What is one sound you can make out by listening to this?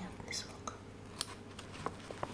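Scissors snip through a plastic wrapper.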